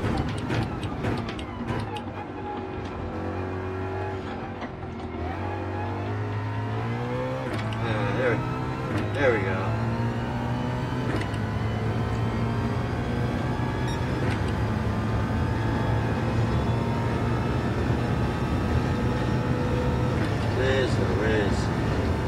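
A racing car engine roars and climbs in pitch as it shifts up through the gears.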